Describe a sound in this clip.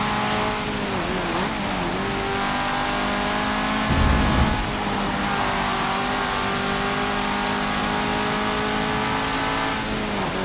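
A car engine hums steadily at high revs, dipping briefly as gears shift.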